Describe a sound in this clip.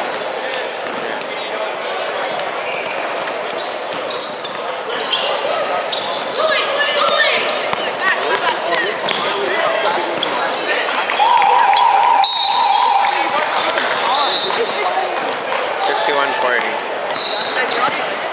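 Many people chatter and call out in a large echoing gym.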